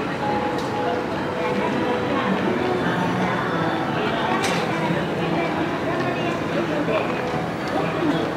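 A crowd of people murmurs and chatters at a distance outdoors.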